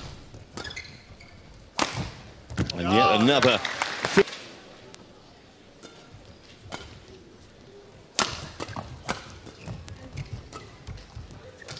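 A shuttlecock is struck sharply by rackets again and again.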